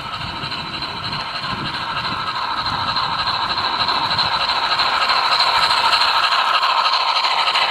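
A small steam locomotive chuffs steadily.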